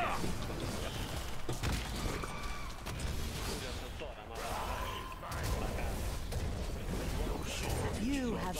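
Magic spells crackle and whoosh.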